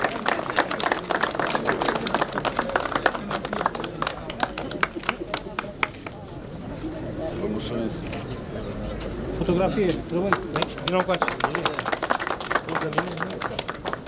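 A crowd claps outdoors.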